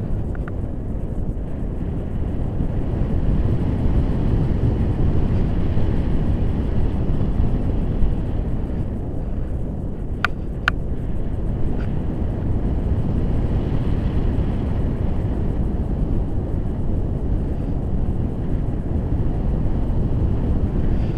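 Strong wind roars and buffets against a microphone.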